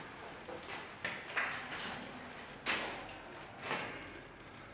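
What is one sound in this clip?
Footsteps tread on a hard floor nearby.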